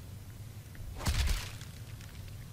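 A heavy thud strikes the ground close by.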